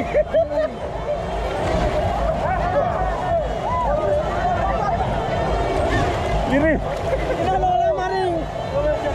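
Water splashes as people move around.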